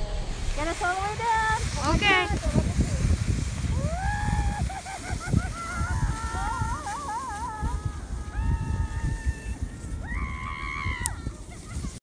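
A sled scrapes and hisses over snow.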